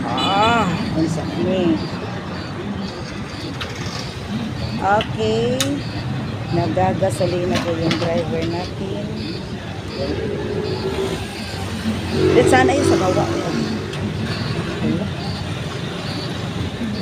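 A motorcycle engine idles steadily.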